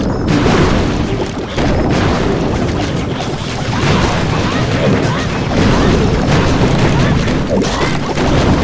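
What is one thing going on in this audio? Explosions boom and crackle repeatedly.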